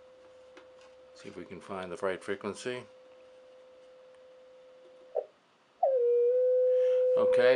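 A steady high electronic tone sounds from an oscillator, briefly cutting out and coming back louder.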